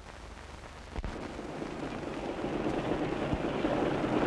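A motorcycle engine rumbles steadily, growing louder.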